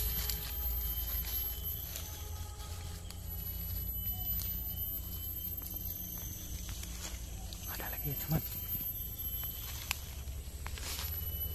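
Footsteps rustle through ferns and leaves.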